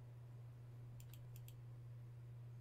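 Crystal shards chime and crackle.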